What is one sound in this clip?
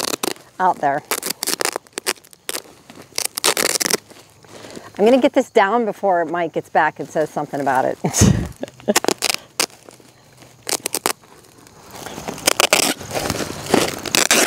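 Plastic sheeting rustles and crinkles as it is handled.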